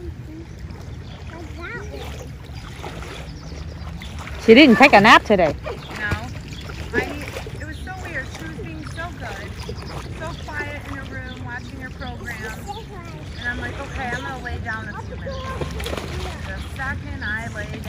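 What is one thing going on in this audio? Young girls talk and call out excitedly nearby, outdoors.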